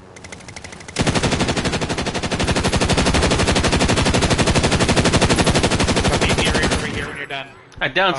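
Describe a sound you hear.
An automatic gun fires a long, rapid burst of shots.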